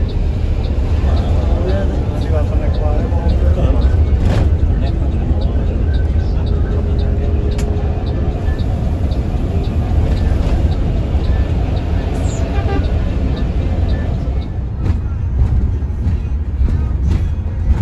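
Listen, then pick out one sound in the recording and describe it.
A bus engine hums with a deep, steady rumble from inside the cabin.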